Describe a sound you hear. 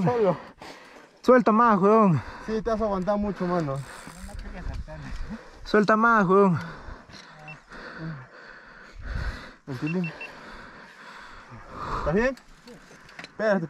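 A young man talks loudly and with animation close by, outdoors.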